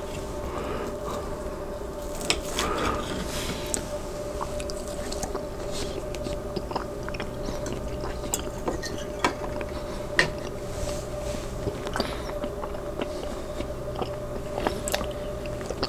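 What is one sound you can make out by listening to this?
A knife and fork scrape and clink against a plate.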